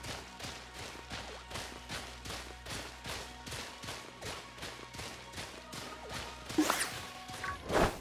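Quick, even footsteps patter on grass.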